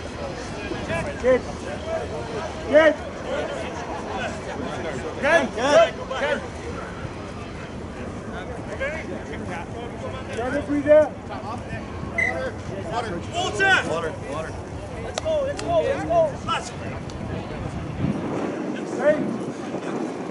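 Spectators on the sideline shout and cheer outdoors.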